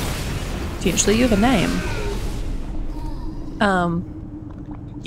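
Game spell effects whoosh and chime.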